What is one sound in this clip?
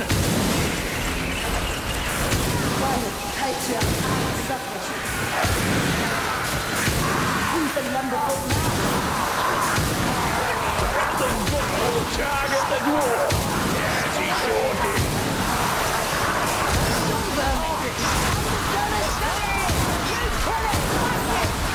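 Heavy guns fire in rapid bursts.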